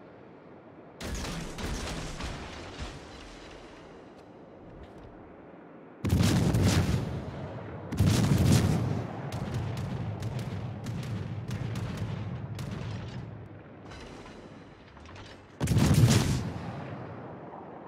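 Heavy naval guns fire in loud booming salvos.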